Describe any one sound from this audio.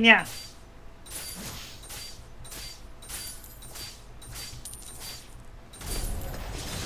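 Game combat effects clash and zap in quick bursts.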